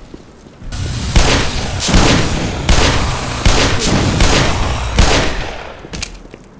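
Loud pistol shots ring out, echoing.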